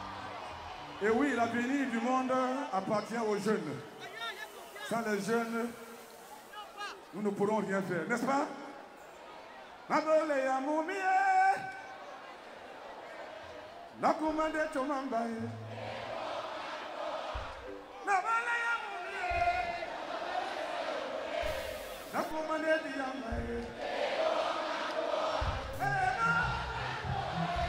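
A man speaks with animation into a microphone, heard over loudspeakers in a large open stadium.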